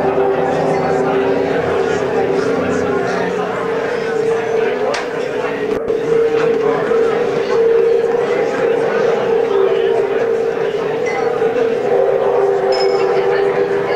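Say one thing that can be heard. A man talks quietly into a telephone.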